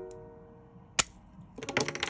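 A marker cap clicks off with a sharp snap.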